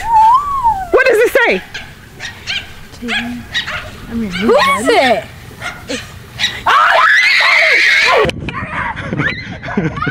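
Young girls talk and laugh excitedly close by.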